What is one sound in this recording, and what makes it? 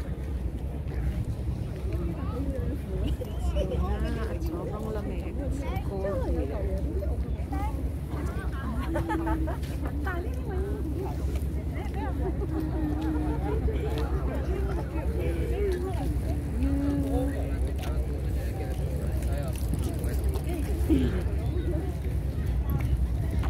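A young woman talks close to the microphone.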